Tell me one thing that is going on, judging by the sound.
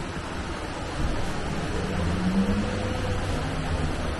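Water rushes over rocks nearby.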